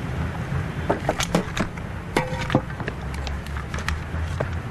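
Paper rustles as a man handles it.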